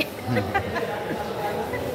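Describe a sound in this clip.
A woman laughs loudly nearby.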